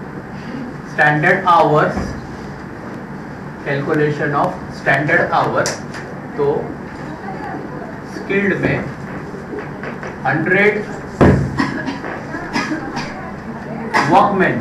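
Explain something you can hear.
A man speaks calmly in a lecturing tone, close by, with pauses.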